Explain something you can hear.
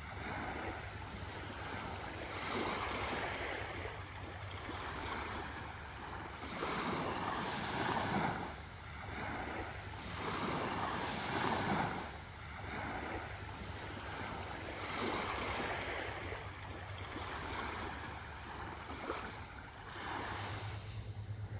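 Small waves lap gently on a sandy shore in swelling bursts.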